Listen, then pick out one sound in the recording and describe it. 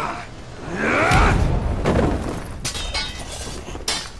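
A body thuds heavily onto a stone floor.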